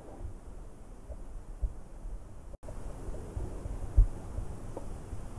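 A person breathes slowly and softly in sleep, close by.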